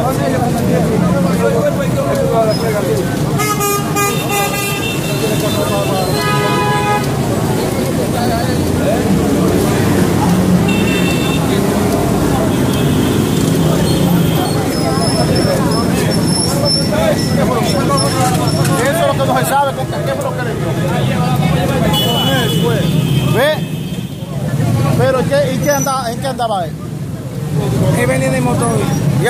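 A crowd of men talk and shout excitedly nearby.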